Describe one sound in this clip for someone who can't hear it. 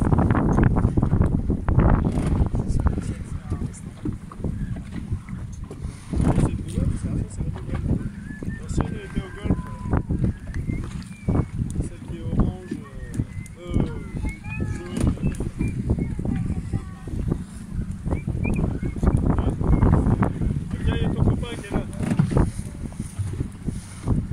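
Choppy water splashes against a boat's hull.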